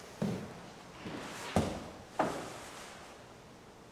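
Footsteps and knocks echo in a large, reverberant hall.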